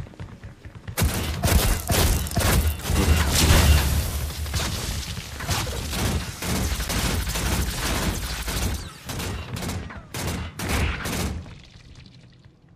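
Rapid energy gunfire crackles and booms in quick bursts.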